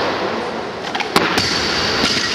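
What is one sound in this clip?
A barbell drops onto a platform with a heavy thud.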